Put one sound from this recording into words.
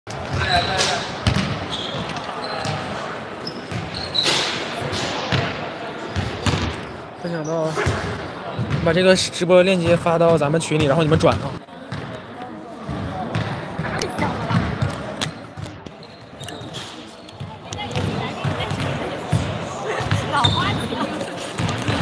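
People talk and call out in a large echoing hall.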